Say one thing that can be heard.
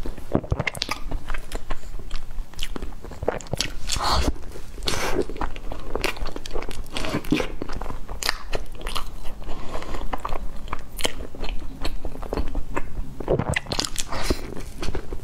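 A young woman bites into and chews crisp baked pastry close to a microphone.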